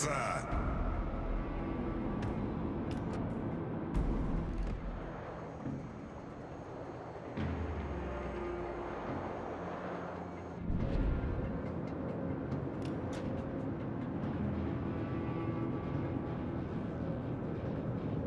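A ship's engines rumble low and steady.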